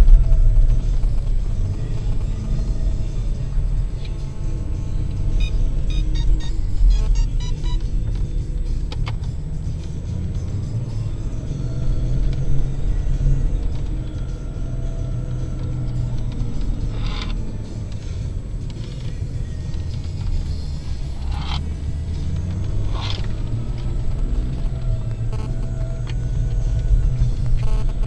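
A car engine rumbles steadily, heard from inside the car.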